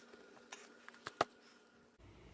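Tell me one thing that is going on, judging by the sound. A heavy book is set down with a soft thud.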